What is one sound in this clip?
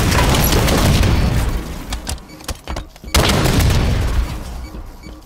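Guns fire in loud rapid bursts.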